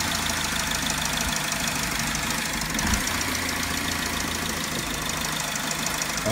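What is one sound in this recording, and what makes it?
A car engine idles with a steady, rapid ticking.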